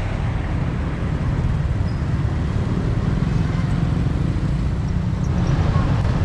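Motorbike engines hum past on a street.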